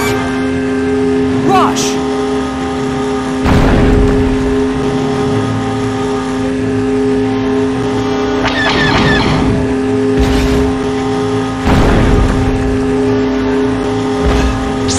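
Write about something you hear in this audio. A motorbike engine hums steadily as a rider speeds along.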